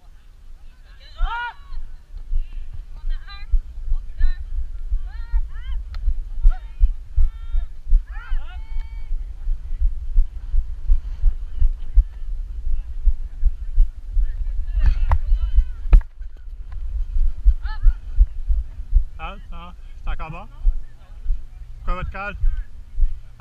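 Young men and women shout and call out across an open field.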